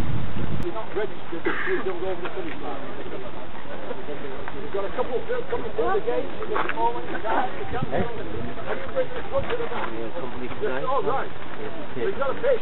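A crowd of men and women chat nearby.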